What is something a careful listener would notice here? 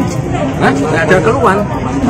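A young man speaks outdoors among a crowd.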